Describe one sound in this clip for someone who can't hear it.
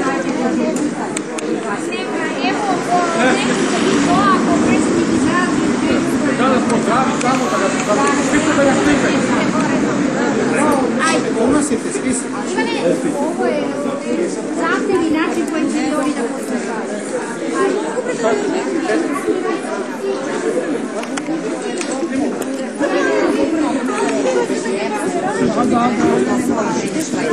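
A large crowd of men and women talks loudly and excitedly outdoors, close by.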